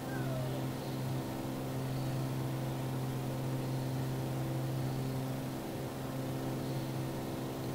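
A small plane's propeller engine drones steadily inside the cockpit.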